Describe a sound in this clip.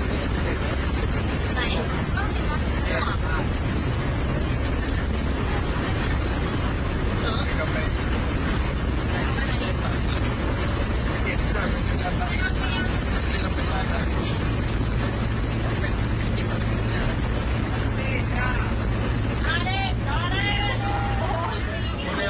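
Young people chatter and laugh inside the bus.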